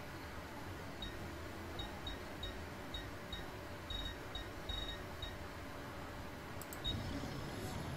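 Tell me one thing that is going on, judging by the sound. A video game menu gives short soft ticks as the cursor moves between items.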